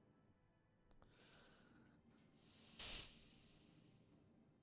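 A heavy sliding door hisses open.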